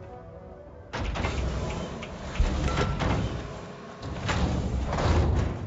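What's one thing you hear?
A heavy airlock door opens with a loud rush of air.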